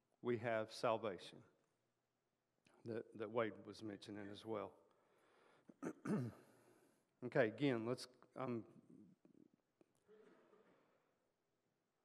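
An elderly man speaks calmly through a microphone in an echoing hall.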